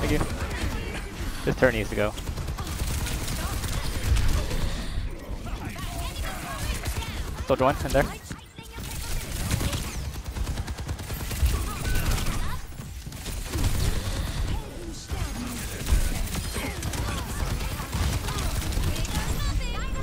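Explosions boom with heavy thuds.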